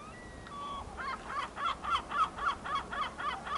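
A water bird calls repeatedly in quick bursts.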